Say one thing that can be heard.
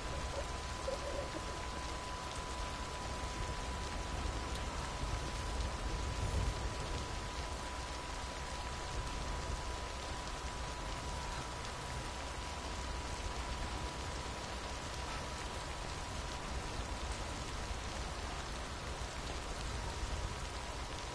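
Steady rain falls outdoors with a soft hiss.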